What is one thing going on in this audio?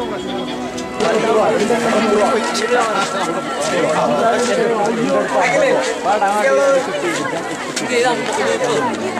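A crowd of young women chatter and laugh close by.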